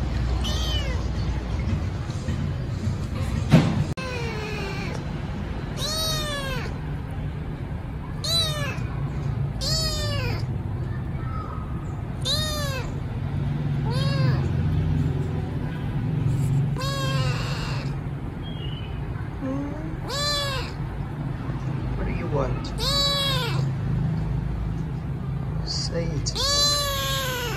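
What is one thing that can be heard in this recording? A kitten meows loudly again and again, close by.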